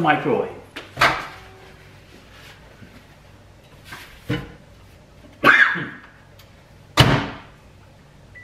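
A microwave door opens and shuts with a thud.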